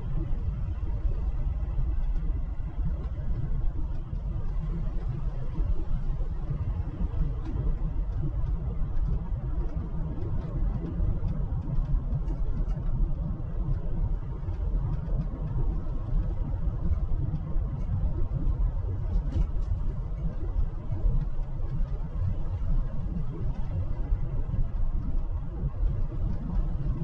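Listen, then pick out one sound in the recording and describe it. A car drives steadily along a road, its engine and tyres rumbling low.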